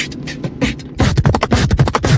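A young man beatboxes loudly into a microphone.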